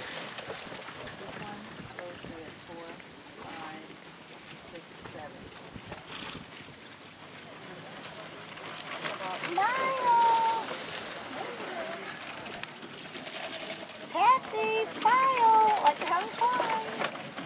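A horse's hooves thud on soft ground at a trot.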